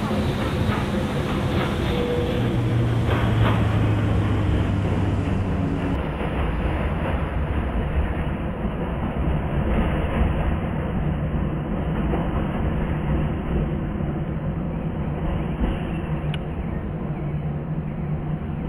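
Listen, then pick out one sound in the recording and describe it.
Train wheels rumble over rails.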